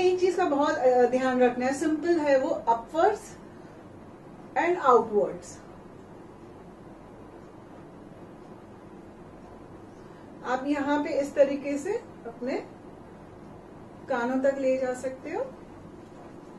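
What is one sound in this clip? A woman talks calmly into a nearby microphone, in short bursts with pauses.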